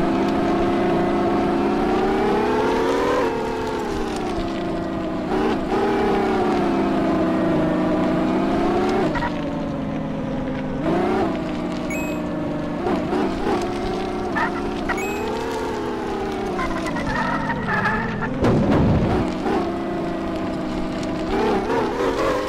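A car engine drones and revs up and down.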